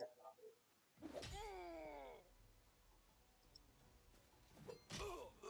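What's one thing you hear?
A blow lands with a heavy impact during a fight.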